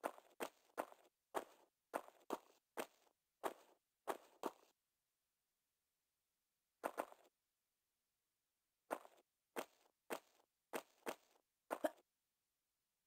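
Footsteps tap quickly on a hard stone floor.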